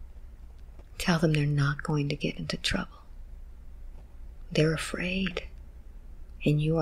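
A woman speaks in a strained, pained voice close to a microphone.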